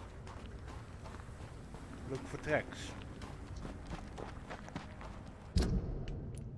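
Footsteps hurry over wet ground.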